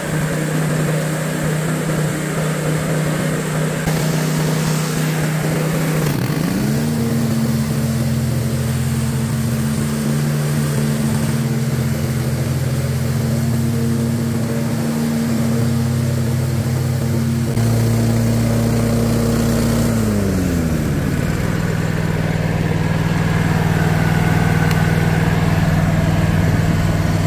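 A mower engine drones steadily close by, rising in pitch and later dropping back.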